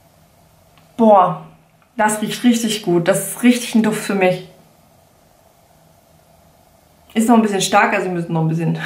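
A young woman talks up close, calmly and with animation.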